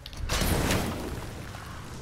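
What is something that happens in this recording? An axe smashes into ice with a loud crash.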